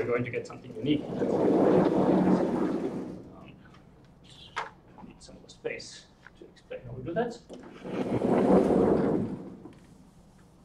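A sliding chalkboard rumbles as it moves.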